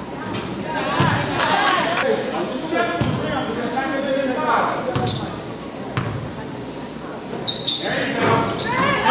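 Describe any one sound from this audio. Spectators talk and call out in a large echoing gym.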